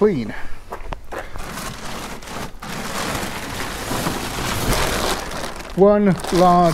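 A plastic cover rustles and crinkles as it is handled.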